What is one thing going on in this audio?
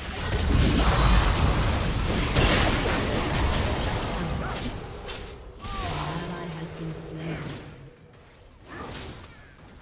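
Spell effects crackle and blast in a loud fight.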